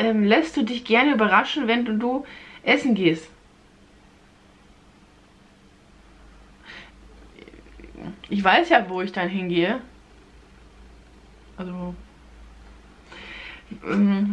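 A young woman talks close up, in bursts with pauses.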